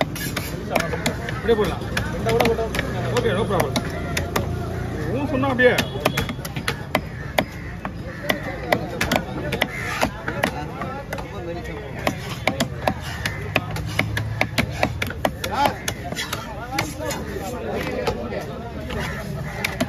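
A heavy knife chops repeatedly through fish on a wooden block.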